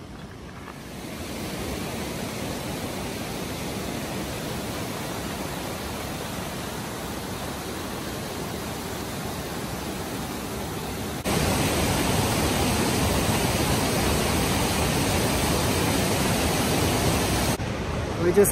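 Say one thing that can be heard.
Water rushes loudly over rocks nearby.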